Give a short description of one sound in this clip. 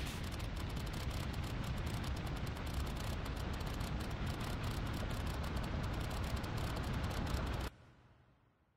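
Score counters tick rapidly in a game's results tally.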